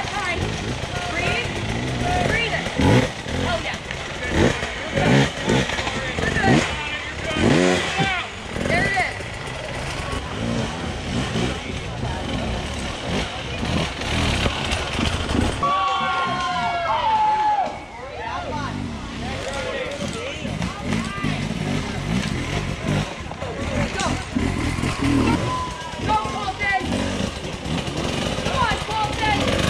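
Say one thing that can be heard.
A dirt bike engine revs hard as it climbs over rocks.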